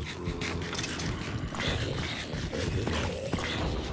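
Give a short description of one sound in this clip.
Zombies groan and moan in a game.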